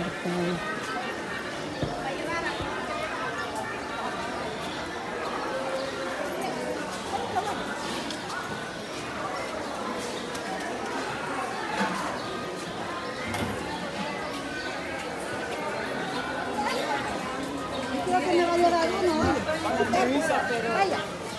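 A crowd of adults chatters all around.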